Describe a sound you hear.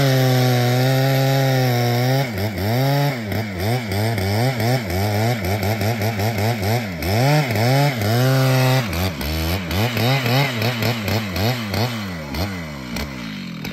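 A chainsaw bites into a thick tree trunk.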